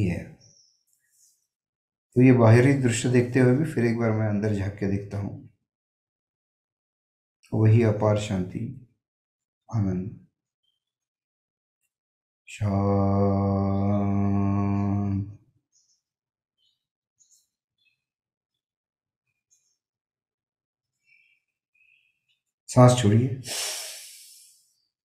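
An elderly man speaks calmly, heard through a microphone.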